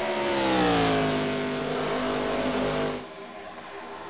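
A race car engine roars past, its pitch falling as it goes by.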